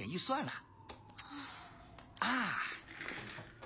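A young man speaks up close.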